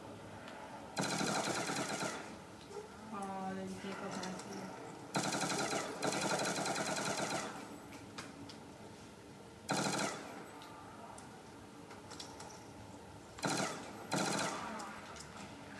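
Rapid gunfire bursts out in short loud volleys.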